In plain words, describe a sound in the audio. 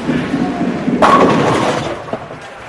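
Bowling pins crash and clatter as a ball strikes them.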